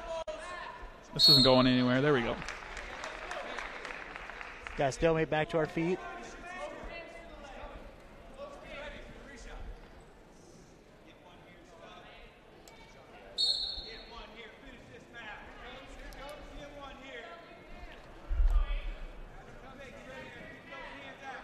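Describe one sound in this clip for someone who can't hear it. A crowd shouts and cheers in a large echoing gym.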